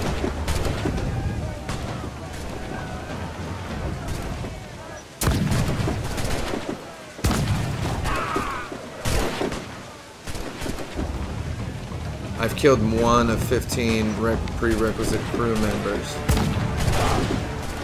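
Rifle shots crack.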